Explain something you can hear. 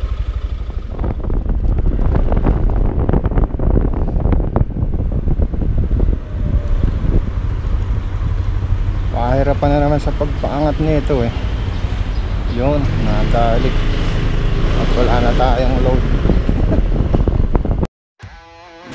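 A motorcycle engine hums as the bike rides along.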